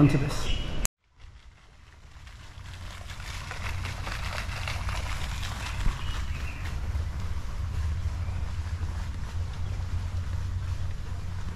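A fountain splashes steadily outdoors.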